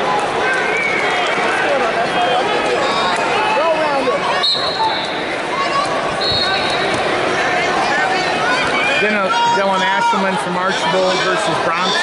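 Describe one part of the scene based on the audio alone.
A crowd in a large echoing arena shouts and cheers throughout.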